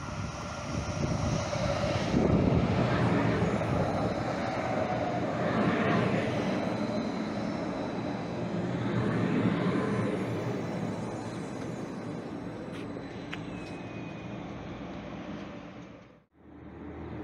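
A light rail train rumbles and squeals past along the tracks.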